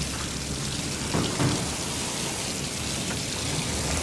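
Water runs from taps into sinks.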